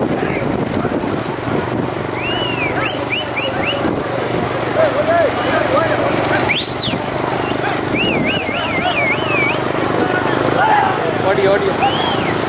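Bullocks' hooves clatter on asphalt at a gallop.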